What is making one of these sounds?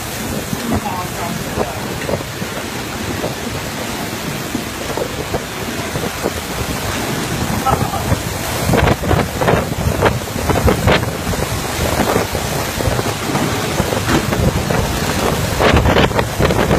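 Typhoon wind roars in strong gusts.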